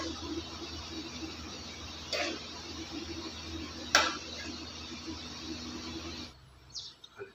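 A spoon scrapes and knocks against a pan.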